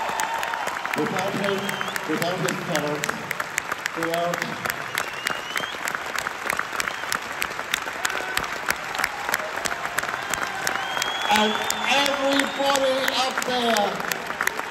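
A man sings through a microphone over loudspeakers.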